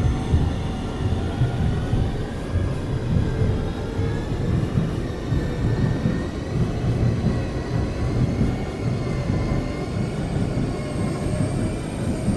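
A train rumbles steadily along the tracks, its motor whining.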